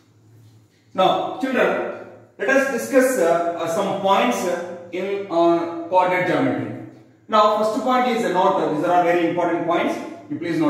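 A man speaks calmly and clearly into a close microphone, explaining at a steady pace.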